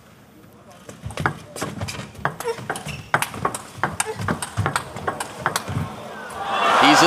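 A table tennis ball clicks back and forth between paddles and table in quick rapid taps.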